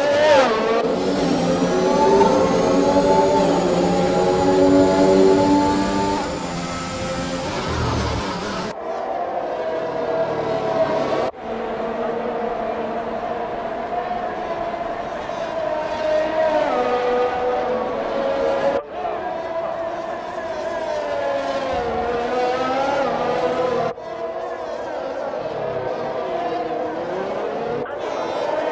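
A racing car engine roars loudly, its whine rising and falling as it shifts through gears.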